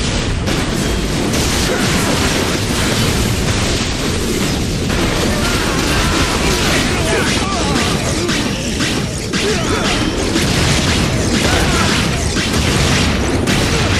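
Explosions and blasts boom during a fight.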